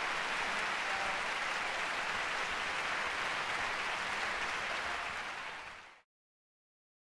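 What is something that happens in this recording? A crowd applauds in a large concert hall.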